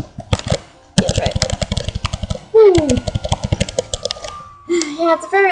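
Short electronic blips patter rapidly.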